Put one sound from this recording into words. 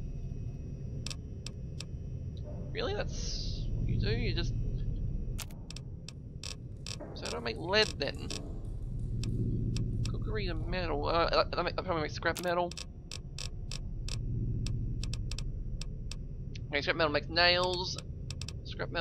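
Short menu clicks tick in quick bursts.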